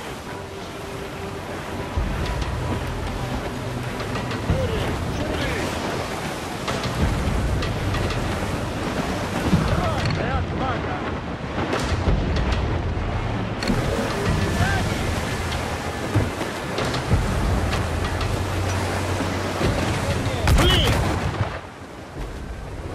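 Waves wash and rush against a ship's hull.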